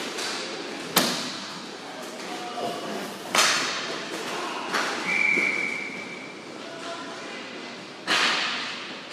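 A ball knocks hard against the boards.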